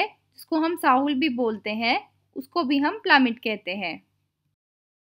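A woman speaks clearly and calmly through a microphone.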